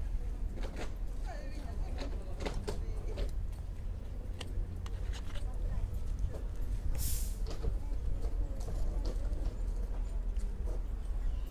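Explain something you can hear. A train rolls slowly toward the platform in the distance.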